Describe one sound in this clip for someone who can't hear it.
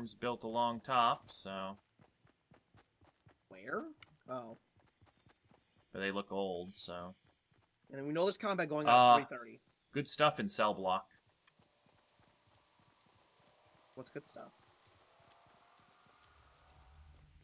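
Footsteps patter quickly over grass and stone.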